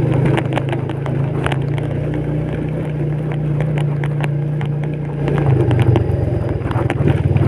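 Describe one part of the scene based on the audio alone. Tyres roll and bump over a rough path.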